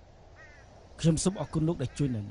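Another middle-aged man speaks close by, firmly.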